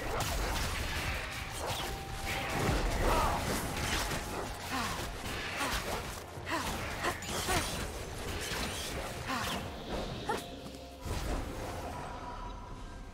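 Game spell effects whoosh and clash in a fight.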